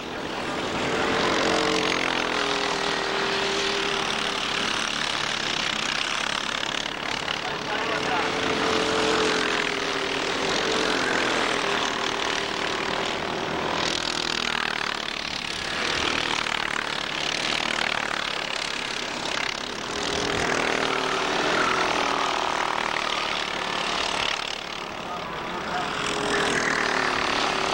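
Kart engines buzz loudly as they race past.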